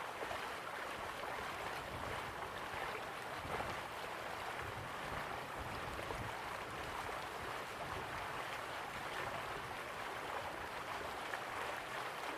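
A waterfall rushes and roars steadily.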